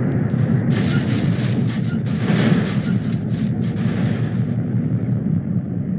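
A truck engine rumbles as the truck slows to a stop.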